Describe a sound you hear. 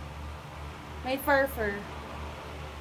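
A young woman speaks briefly close by.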